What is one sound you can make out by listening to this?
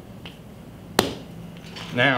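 A lump of clay thumps down onto a hard surface.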